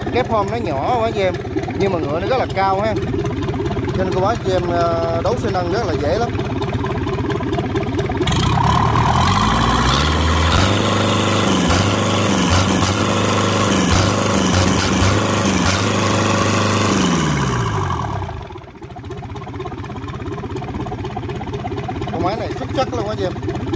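A diesel engine idles with a steady, rattling chug.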